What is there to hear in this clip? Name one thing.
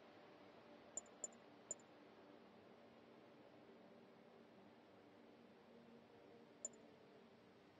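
Short high menu ticks sound as a selection cursor moves.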